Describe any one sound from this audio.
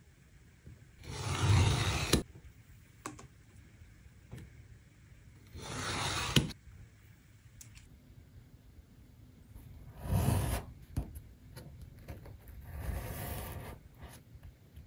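A craft knife scrapes as it slices along a metal ruler.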